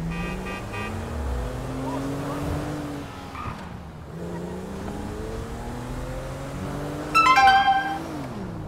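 A car engine revs up and down as the car speeds along.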